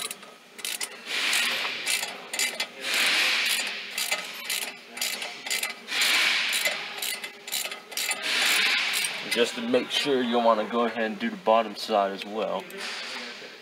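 A socket ratchet clicks as it turns a bolt.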